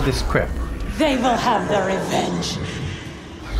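A woman speaks in a cold, menacing voice.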